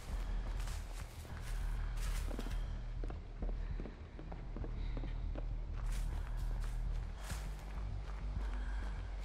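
Footsteps run quickly over debris-strewn ground.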